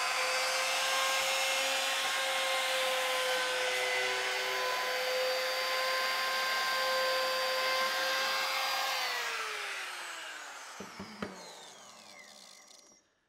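A power router whines loudly and steadily, then winds down.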